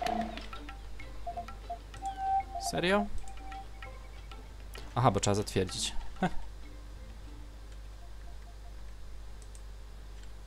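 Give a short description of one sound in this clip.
Menu selections click and chime.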